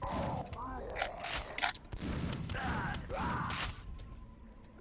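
Gunshots crack and bang in a video game.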